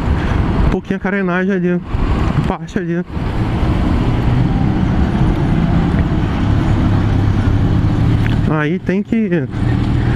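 A motorcycle engine revs up and down between gears.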